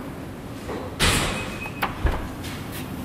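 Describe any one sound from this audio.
A button in a car clicks as it is pressed.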